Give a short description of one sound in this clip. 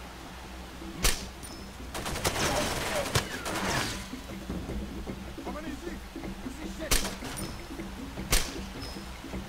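A pistol fires single sharp shots.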